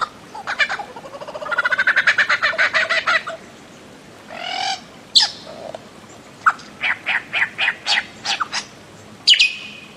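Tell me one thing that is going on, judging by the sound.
A bird calls loudly with rapid, repeated harsh notes and sharp whistles.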